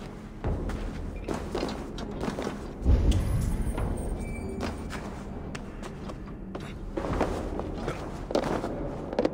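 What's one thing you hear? Footsteps tread slowly across a wooden floor.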